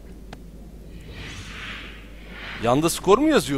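A soft magical whoosh swells and fades.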